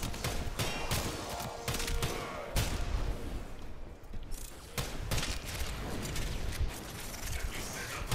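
Energy blasts crackle and burst.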